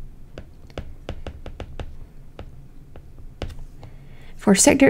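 A stylus taps and clicks on a tablet's glass.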